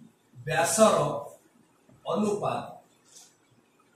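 A man speaks calmly nearby, in short phrases.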